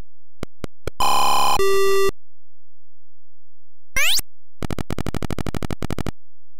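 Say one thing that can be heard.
A rapid buzzing electronic jingle from a retro computer game plays.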